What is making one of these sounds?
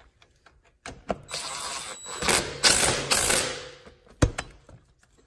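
A cordless drill whirs and rattles in short bursts.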